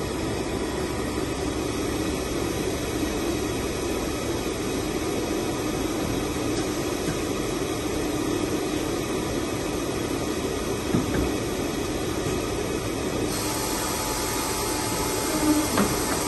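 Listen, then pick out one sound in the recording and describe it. A paper guillotine down-loader hums as it lowers a stack of paper.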